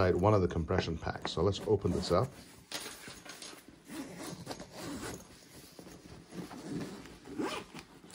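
A zipper is pulled along a fabric case.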